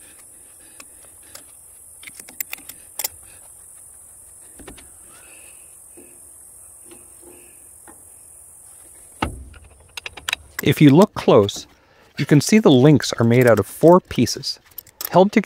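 Metal tools clink and tap against metal parts.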